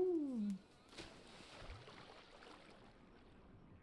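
Water splashes as a body plunges in.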